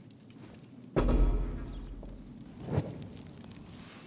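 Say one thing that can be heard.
A torch flares up with a whoosh and crackles.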